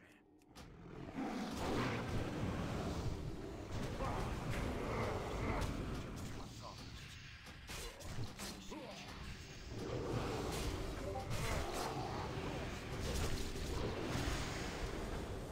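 Game spells and weapon blows clash and crackle in a fight.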